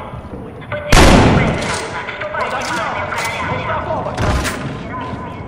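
Loud gunshots bang close by.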